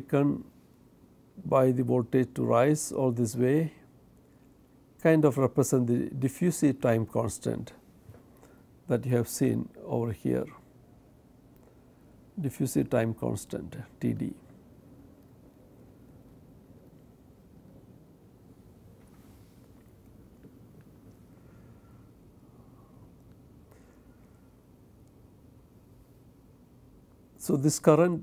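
A middle-aged man lectures calmly into a close microphone, with long pauses.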